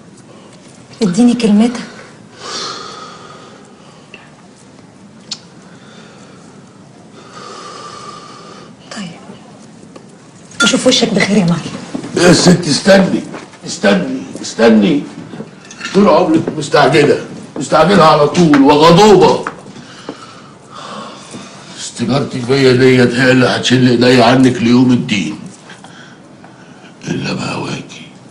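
An elderly man speaks angrily, raising his voice.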